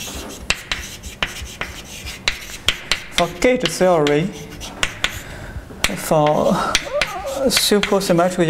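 Chalk taps and clicks sharply on a blackboard.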